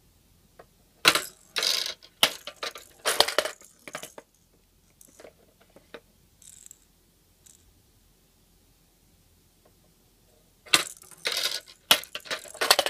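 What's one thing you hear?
A plastic ball rattles and rolls down a toy track.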